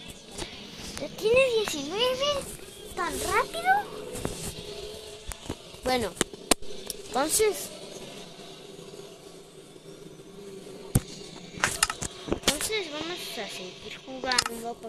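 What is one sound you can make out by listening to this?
A boy talks excitedly into a close microphone.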